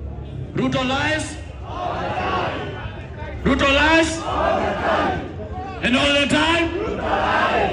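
A man shouts with passion through a loudspeaker outdoors.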